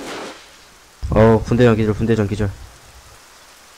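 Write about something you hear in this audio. A smoke grenade bursts with a loud hiss nearby.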